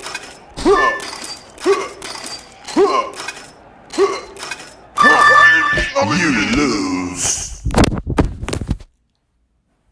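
A mobile video game plays cartoon bouncing sound effects.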